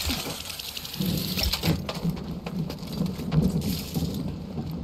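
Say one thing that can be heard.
Footsteps run on a metal floor.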